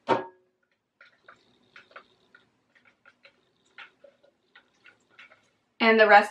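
A spatula scrapes sauce from a plastic bowl.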